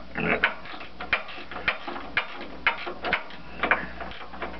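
A wrench clicks as it turns a bolt.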